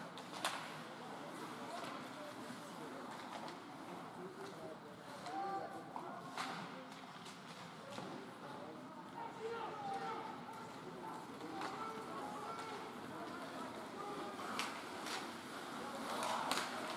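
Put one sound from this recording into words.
Ice skates scrape across ice in a large echoing rink.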